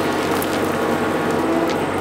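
Dirt and stones pour from an excavator bucket.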